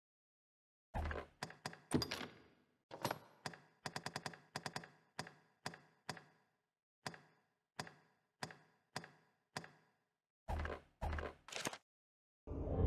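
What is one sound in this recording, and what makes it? Short menu clicks and ticks sound in quick succession.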